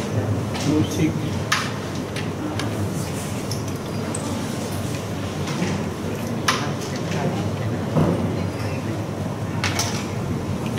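Wooden game pieces click and clatter as hands gather and stack them on a board.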